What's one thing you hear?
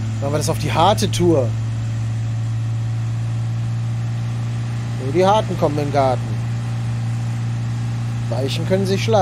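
A car engine hums steadily at high revs.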